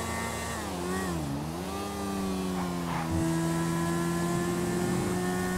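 A motorcycle engine revs and hums, its pitch dipping and rising.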